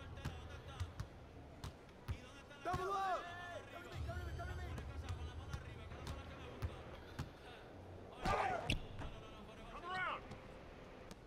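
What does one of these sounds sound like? A basketball bounces steadily on a hard court.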